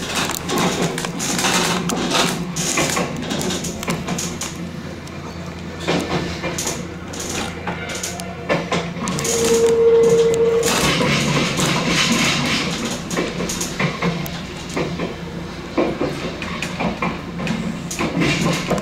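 Train wheels clatter and click over rail joints and switches.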